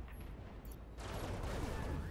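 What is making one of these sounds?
Laser weapons fire in quick bursts.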